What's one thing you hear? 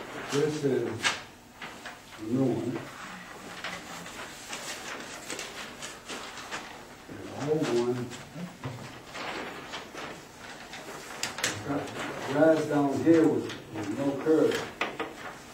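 A man talks calmly in a room.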